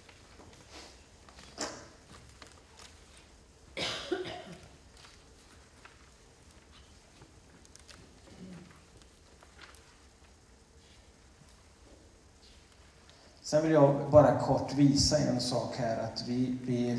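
A man speaks through a microphone in a large echoing hall, with long pauses at first and then at length.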